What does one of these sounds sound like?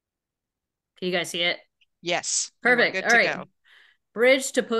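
An older woman speaks with animation over an online call.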